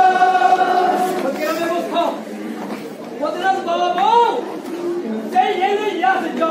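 A crowd of men talk and murmur together.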